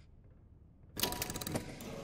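A heavy mechanism clanks and rumbles into motion.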